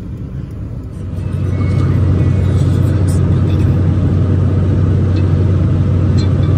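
A car engine hums steadily from inside the car.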